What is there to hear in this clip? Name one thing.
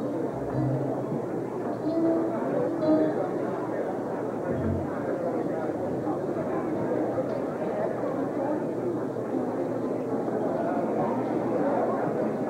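A man preaches into a microphone, heard through loudspeakers in an echoing hall.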